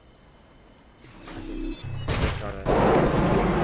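Blocks crash and clatter as a plane breaks apart.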